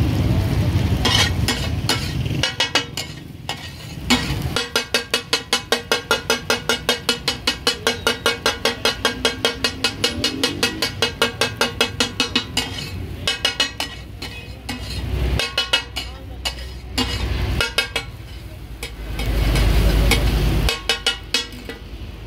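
A metal spatula scrapes and clatters rapidly against a wok.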